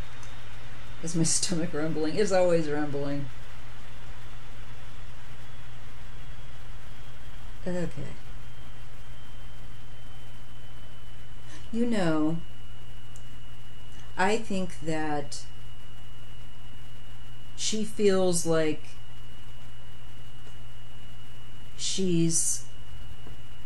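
A middle-aged woman speaks calmly in short bursts, close to a microphone.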